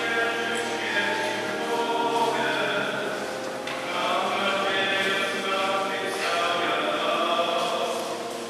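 A congregation sings a slow hymn in a large echoing hall.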